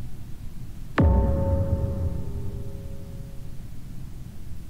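A video game plays a loud, dramatic crash of sound that rings out and fades.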